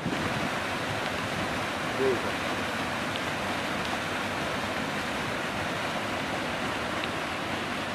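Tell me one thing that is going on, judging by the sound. Muddy water pours down heavily and splashes into churning water below.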